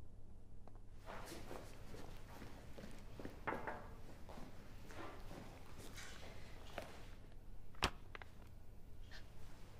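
Footsteps click across the floor.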